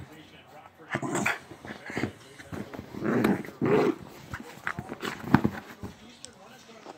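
A small dog scrambles and paws against a leather couch.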